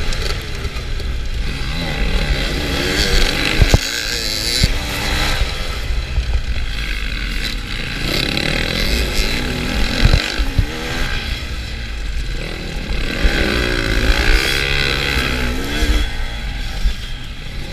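A dirt bike engine revs hard close by, rising and falling as it shifts gears.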